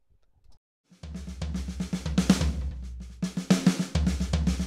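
Electronic drums play a fast beat.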